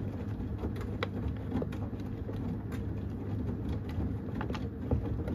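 A washing machine drum churns wet laundry with a steady low rumble.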